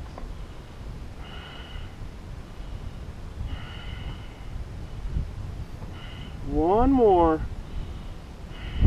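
Wind buffets the microphone outdoors.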